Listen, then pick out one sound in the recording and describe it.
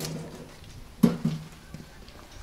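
A metal grill clanks as it is set down.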